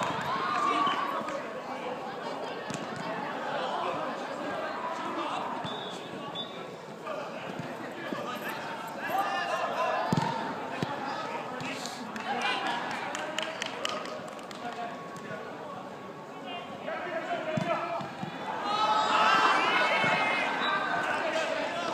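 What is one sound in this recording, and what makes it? Children shout and call out across a large open pitch.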